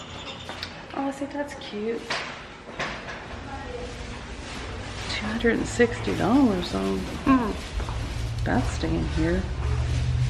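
A middle-aged woman talks close by in a lively way.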